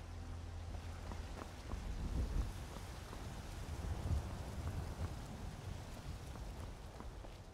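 Footsteps tread on stone cobbles.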